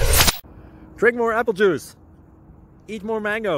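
A young man speaks close to the microphone with animation.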